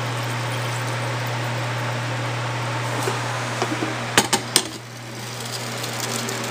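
A coffee machine hums steadily.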